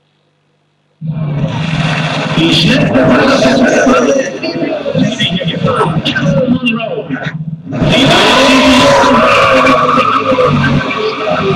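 A racing car's engine roars and revs up and down through a loudspeaker.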